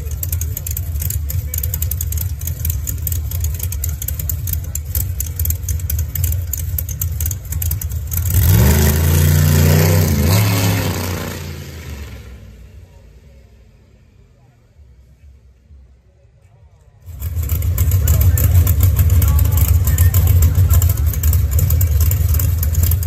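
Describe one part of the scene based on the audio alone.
A car engine rumbles loudly at idle close by.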